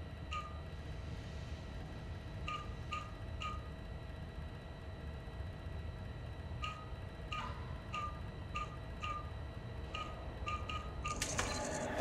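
A computer terminal beeps in short, clipped tones.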